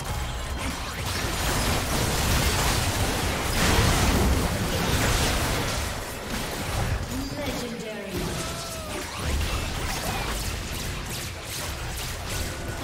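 Spell effects and attacks burst and crackle in a fast video game fight.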